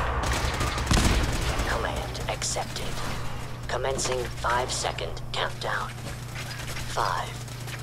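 Laser guns fire in rapid zaps.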